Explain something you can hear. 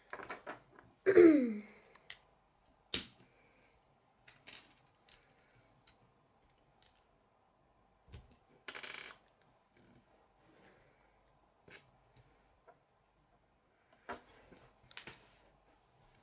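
Plastic building pieces click and snap together.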